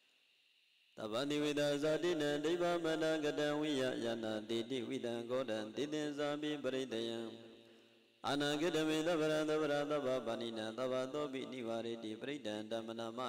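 A man chants loudly in a steady, sing-song voice through a microphone.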